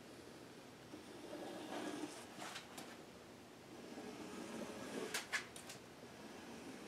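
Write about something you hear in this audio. A sponge scrapes and rubs wet paint across a canvas.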